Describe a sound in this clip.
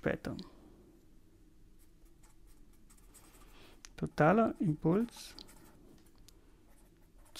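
A marker squeaks and scratches softly on paper.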